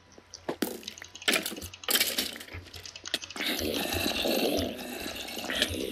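A sword strikes bony creatures with sharp hits.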